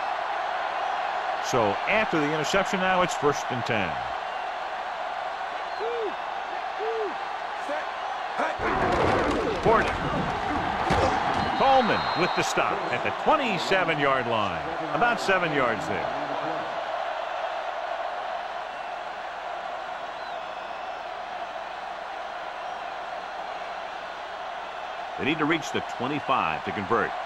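A stadium crowd roars steadily.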